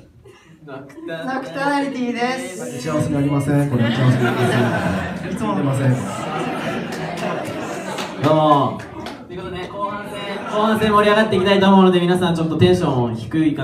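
Several young people sing together into microphones over loudspeakers.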